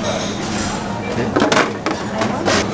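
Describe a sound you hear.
A plate clinks down onto a plastic tray.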